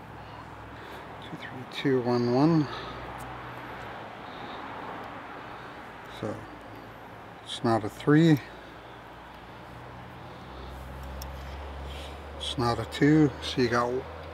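Metal picks scrape and click softly inside a lock.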